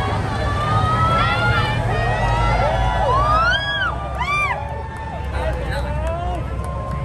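A large outdoor crowd cheers and shouts with excitement.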